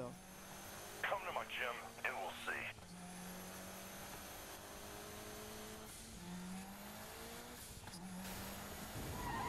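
A car engine hums steadily and rises in pitch through each gear change.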